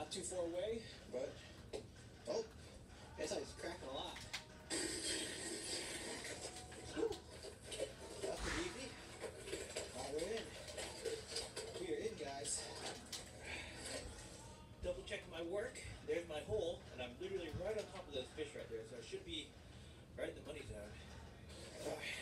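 Game sounds and crowd noise play from a television.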